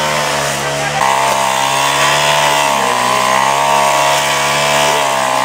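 A brush cutter engine whines loudly and steadily close by.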